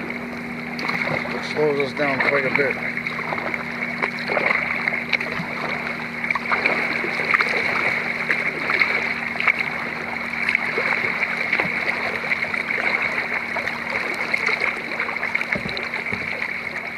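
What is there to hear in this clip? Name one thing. Small waves lap and splash against a kayak's hull.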